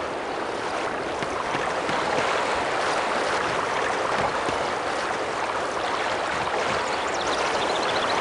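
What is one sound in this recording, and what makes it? Water splashes steadily from a fountain.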